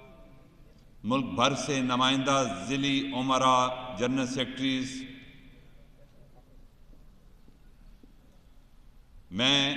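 An elderly man speaks forcefully through a microphone and loudspeakers in a large echoing hall.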